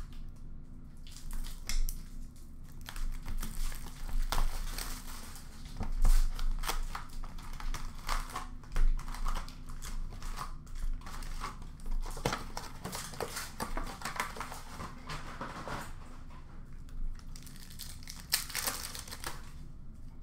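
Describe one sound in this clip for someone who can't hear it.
Hands shuffle and knock cardboard card boxes together.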